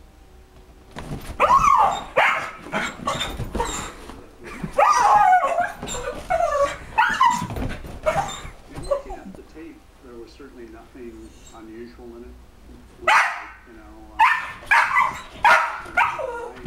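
A small dog barks and yaps excitedly, close by.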